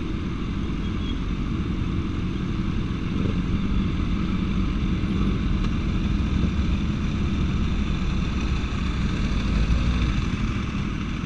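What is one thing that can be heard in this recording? Several motorcycle engines idle and rumble close by.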